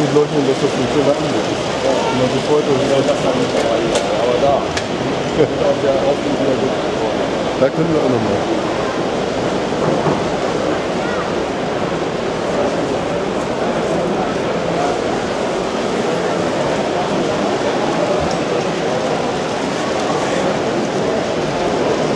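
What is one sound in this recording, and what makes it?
Small model trains roll and clatter along their tracks.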